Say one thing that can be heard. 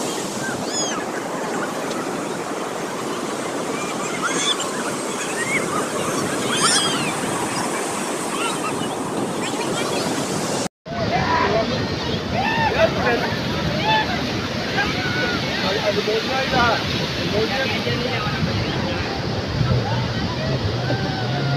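A crowd of men and women shout and chatter at a distance outdoors.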